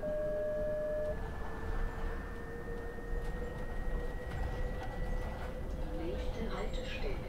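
A bus engine hums steadily with a rising whine as the bus drives along.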